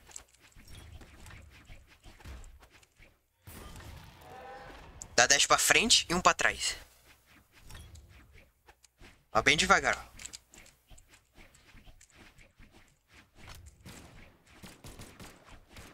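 Game characters clash with quick hitting and swishing sounds.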